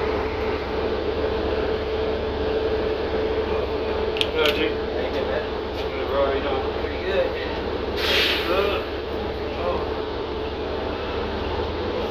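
A bus engine hums steadily while the bus rolls along.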